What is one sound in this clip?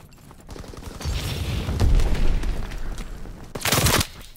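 A fire roars and crackles close by.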